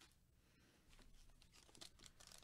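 Foil card packs crinkle as they are handled.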